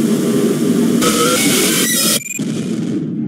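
A loud screeching noise blares.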